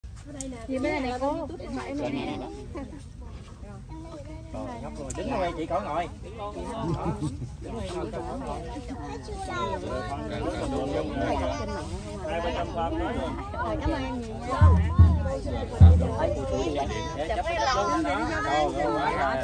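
An older woman laughs and talks close by.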